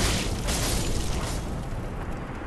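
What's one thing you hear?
A sword slashes and clangs against armour.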